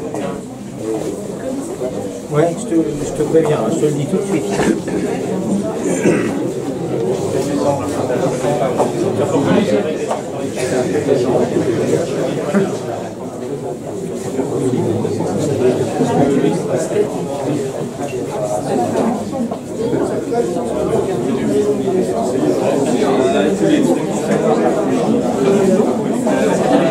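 A crowd of men and women chatters all around in a busy echoing room.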